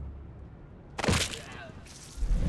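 A heavy blow lands with a sudden thud.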